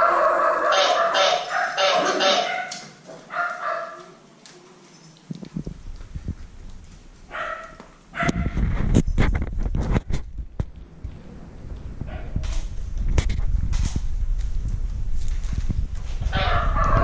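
Puppies whine and yelp close by.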